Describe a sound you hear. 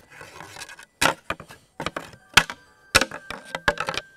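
Equipment clicks and rattles as hands handle it.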